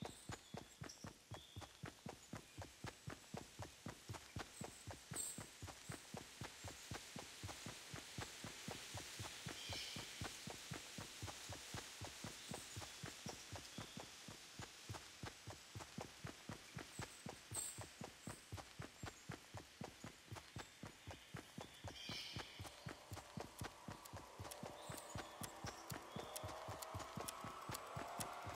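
Quick footsteps thud steadily across grass as a game character runs.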